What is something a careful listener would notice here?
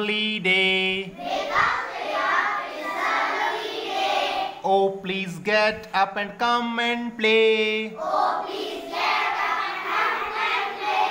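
A group of young children sing loudly together in unison nearby.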